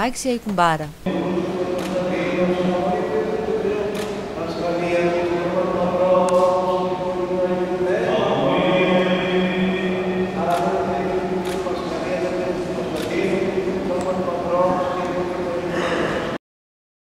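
An elderly man chants in a slow, steady voice through a microphone, echoing in a large hall.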